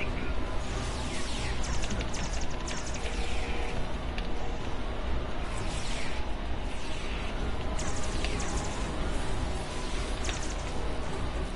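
Laser blasters fire in rapid bursts.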